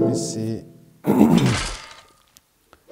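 Ice shatters with a sharp crash.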